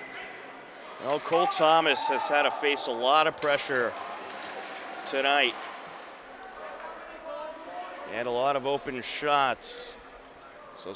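Young men shout and call out in an echoing rink.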